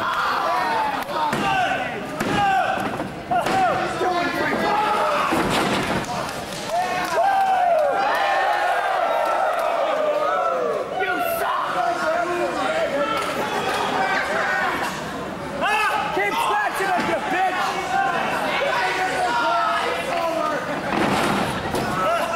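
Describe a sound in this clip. A crowd shouts and cheers throughout, echoing in a large hall.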